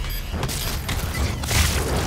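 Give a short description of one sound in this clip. A fiery explosion roars close by.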